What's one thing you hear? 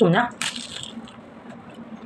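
A woman bites into a crunchy fried spring roll.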